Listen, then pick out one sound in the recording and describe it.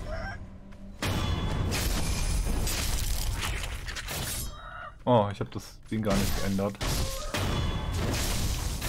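Blades clash and slash in a fight.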